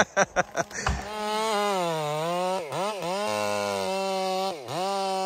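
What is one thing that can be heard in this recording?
A chainsaw roars loudly, revving up and down as it cuts into a tree trunk.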